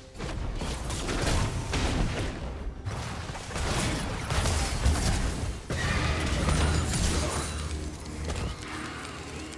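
Video game spells crackle and boom as characters fight.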